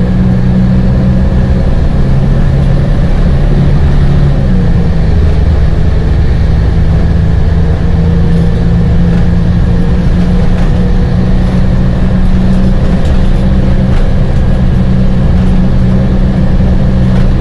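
The bus rattles and creaks as it drives along.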